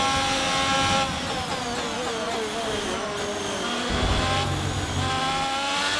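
A racing car engine drops in pitch and crackles as the car brakes and shifts down.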